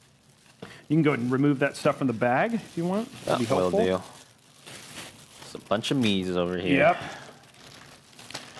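Plastic bags crinkle and rustle.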